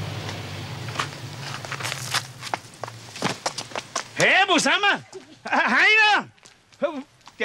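Footsteps run quickly over gravel.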